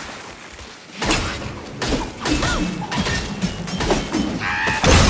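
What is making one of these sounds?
Heavy weapon blows strike a creature with sharp, crunching hits.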